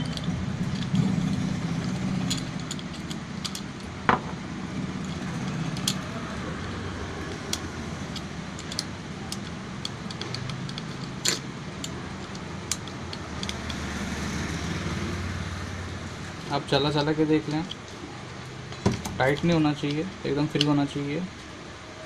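Small metal tools click and tap against a metal casing.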